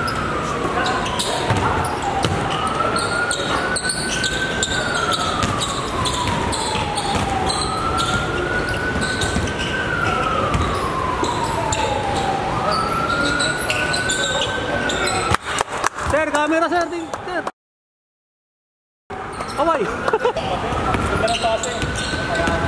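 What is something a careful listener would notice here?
A basketball is dribbled on a hardwood court in an echoing hall.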